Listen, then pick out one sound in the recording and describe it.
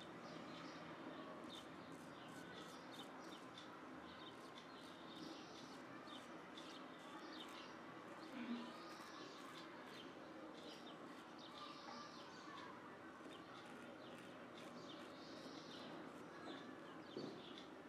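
A straight razor scrapes through stubble close by.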